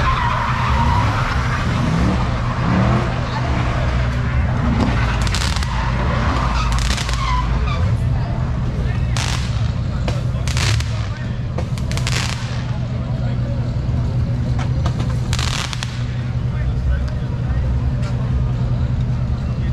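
A crowd of young people shout and cheer outdoors.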